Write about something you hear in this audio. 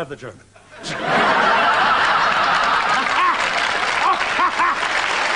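A woman laughs loudly nearby.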